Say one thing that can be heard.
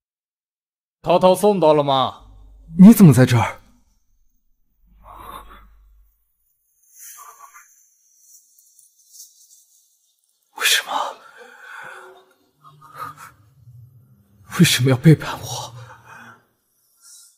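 A young man speaks with emotion, close by.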